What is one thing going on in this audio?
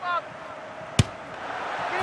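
A football is struck hard with a thump.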